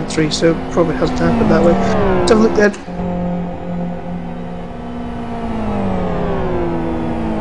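A race car engine roars at high revs, its pitch dropping and rising as it shifts through corners.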